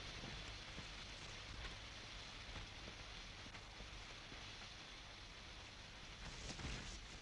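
Large leaves rustle and swish as people push through dense undergrowth.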